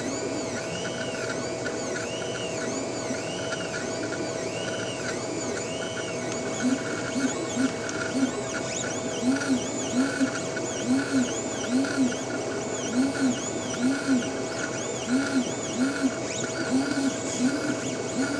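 Stepper motors whine in short rising and falling pulses.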